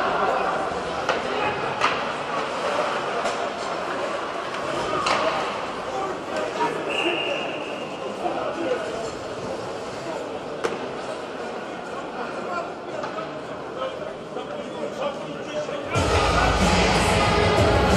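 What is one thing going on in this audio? A crowd murmurs and cheers in a large echoing arena.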